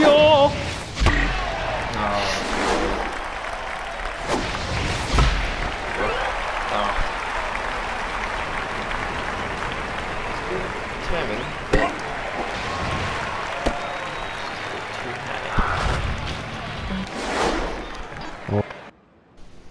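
A stadium crowd cheers and murmurs steadily.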